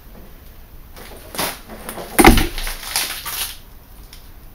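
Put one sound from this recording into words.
Broken glass clinks and scrapes as a hand rakes through shards on a hard floor.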